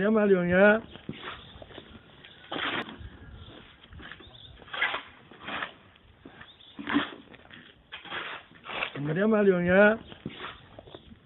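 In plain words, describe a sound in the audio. A shovel scrapes across wet concrete.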